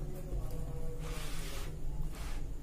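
A sheet of paper rustles as it slides.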